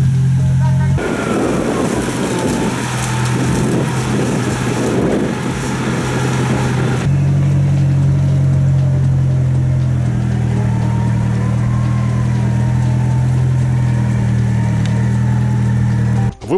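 Tyres churn through mud and water.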